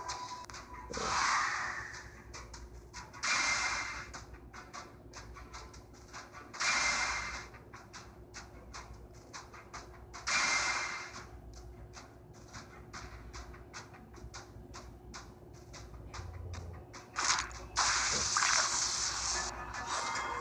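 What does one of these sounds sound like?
Bright whooshing chimes from a game sound in short bursts, again and again.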